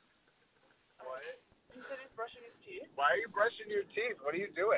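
A man speaks over a phone line.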